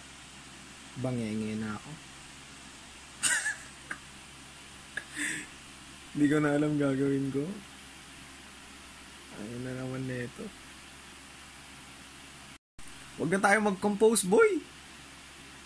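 A young man speaks softly and sleepily close by.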